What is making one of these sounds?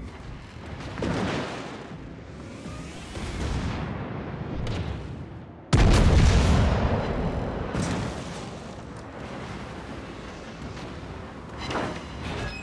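Shells splash into the sea nearby.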